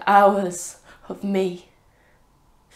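A young woman speaks close by in a tearful, trembling voice.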